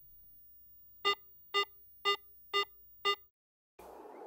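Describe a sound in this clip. An electronic device beeps five times at an even pace.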